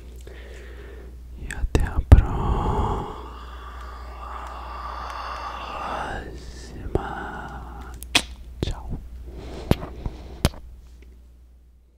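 A young man whispers softly and very close to a microphone.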